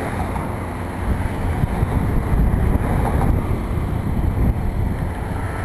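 A car drives past on a road close by.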